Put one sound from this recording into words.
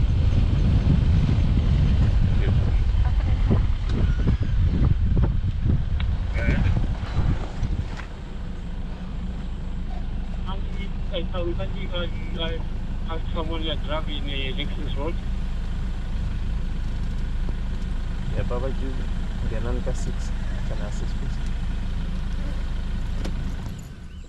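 A vehicle engine hums steadily while driving over a rough dirt track.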